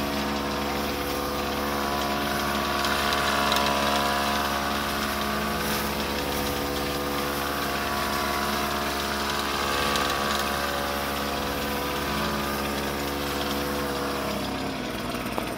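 A motor sprayer drones steadily close by.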